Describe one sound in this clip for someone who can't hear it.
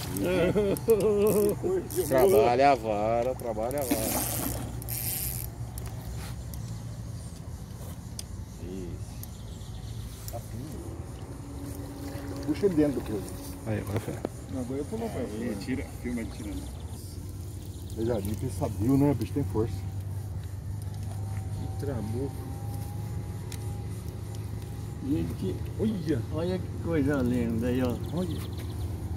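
Men talk nearby, outdoors.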